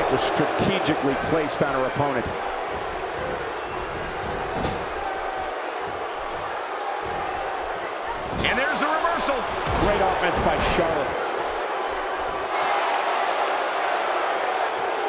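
A large crowd cheers and murmurs steadily.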